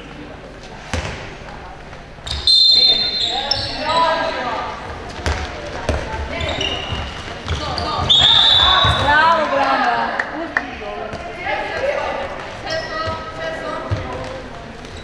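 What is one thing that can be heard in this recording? A ball bounces with dull thuds on the floor.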